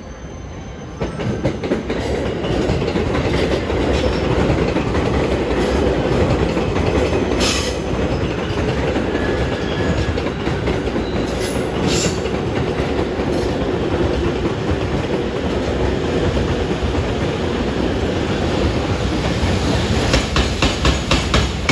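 A freight train rumbles in along the tracks, growing louder as it nears.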